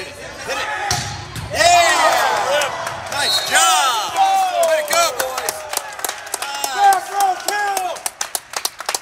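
Spectators cheer loudly after a point.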